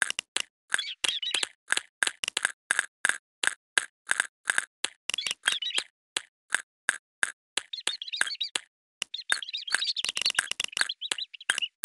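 Short electronic pops sound in quick, steady succession.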